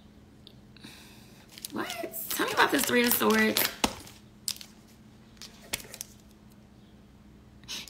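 Paper banknotes rustle as they are handled.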